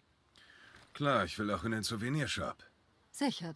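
A man answers calmly, close by.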